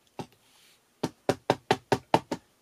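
A pad is dabbed repeatedly with quick, light taps.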